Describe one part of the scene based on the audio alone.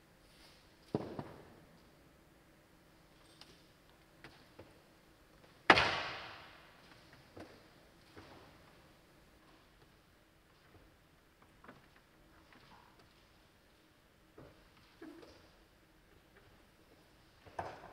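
Objects knock and thump on a table, ringing out in a large, echoing room.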